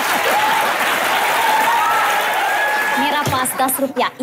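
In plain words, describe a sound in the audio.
A crowd laughs and claps.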